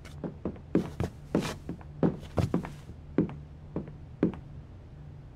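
Boots thud and click on a wooden floor.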